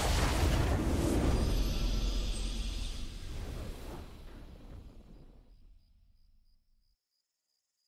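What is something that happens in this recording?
A triumphant fanfare swells and slowly fades away.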